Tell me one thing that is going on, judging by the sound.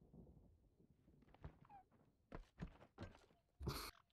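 A soft interface click sounds.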